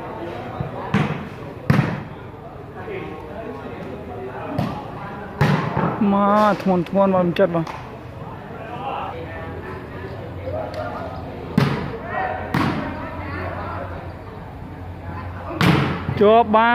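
A ball is kicked with sharp thumps.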